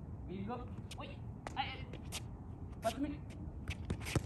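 Sneakers squeak and scuff on concrete.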